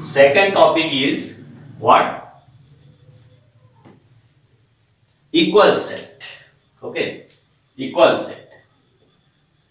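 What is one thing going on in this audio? A middle-aged man speaks in a teaching manner, close by, with pauses.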